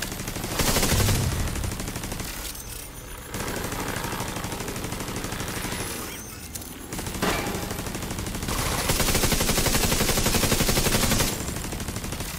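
Rapid gunfire rattles and echoes.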